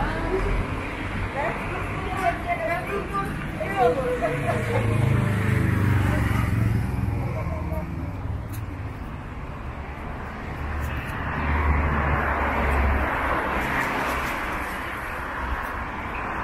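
Cars drive past on cobblestones.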